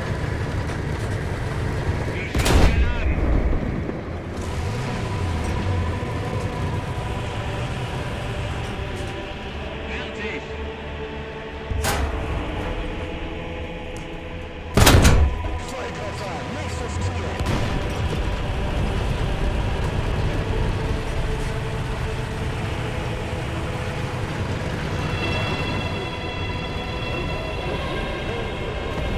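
A tank engine rumbles steadily throughout.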